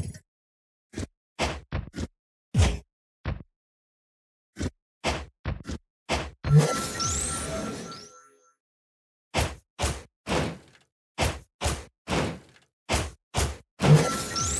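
Game punches and hits thud in quick bursts.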